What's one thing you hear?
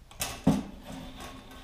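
A hard object knocks on a table.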